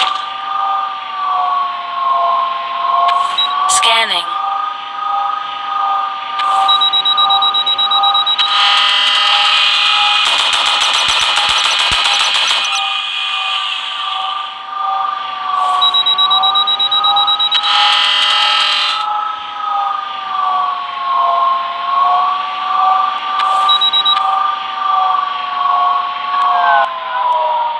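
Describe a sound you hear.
A spaceship engine hums steadily with a slowly wavering pitch.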